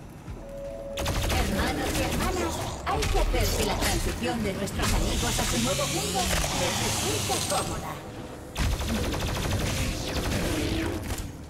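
Heavy gunfire blasts in rapid bursts.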